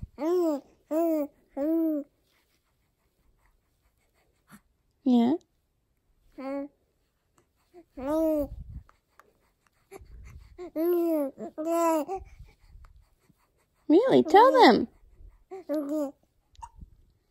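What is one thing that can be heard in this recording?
A baby coos and babbles in short bursts close by.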